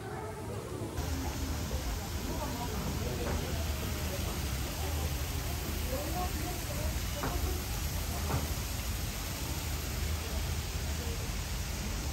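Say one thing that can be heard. A fountain splashes steadily outdoors.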